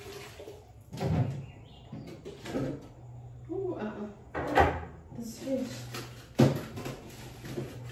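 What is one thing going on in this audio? Items knock and clatter as a refrigerator is emptied.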